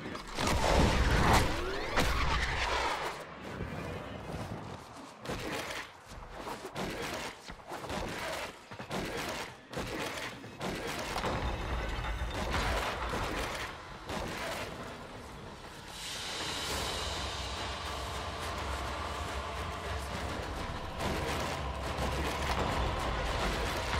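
Whooshing game effects sound as a character dashes along.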